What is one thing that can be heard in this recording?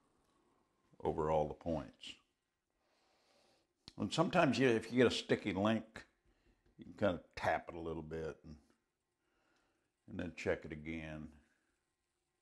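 An older man talks calmly close by.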